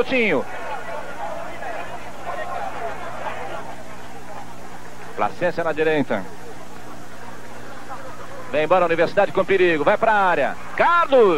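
A large crowd murmurs and cheers in the distance.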